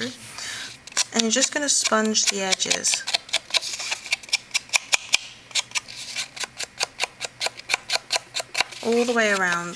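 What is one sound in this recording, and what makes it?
A foam dauber taps quickly and repeatedly against card.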